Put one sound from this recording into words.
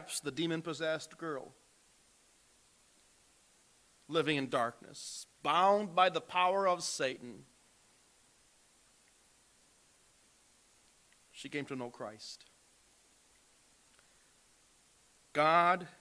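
A man speaks calmly into a microphone, heard over a loudspeaker in a large room, with pauses between phrases.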